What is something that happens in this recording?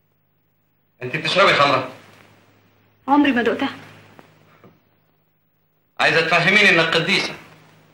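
A young woman speaks in short bursts nearby, with pauses between them.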